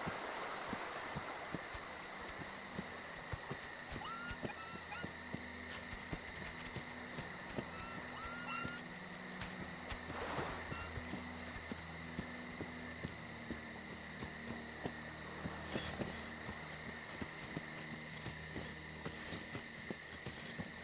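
Footsteps crunch through grass and dry leaves at a steady walking pace.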